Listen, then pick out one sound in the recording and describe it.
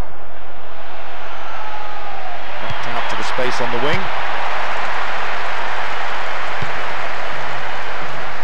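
A large crowd cheers and murmurs steadily in a stadium.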